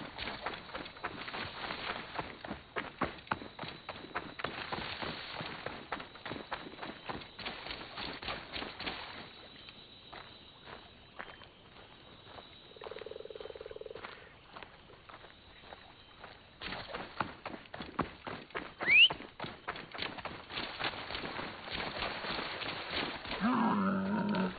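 Footsteps crunch quickly through sand and dry grass.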